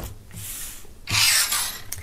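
A hand rubs across a wooden tabletop.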